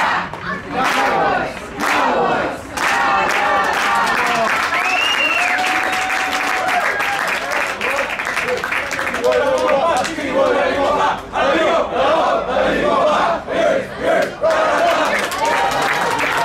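Young men in a team huddle shout together.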